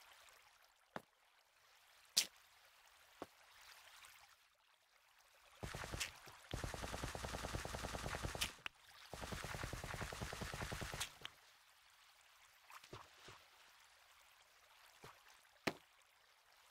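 Blocks land with short, sharp knocks.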